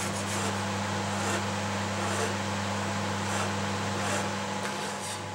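A file rasps back and forth across wood.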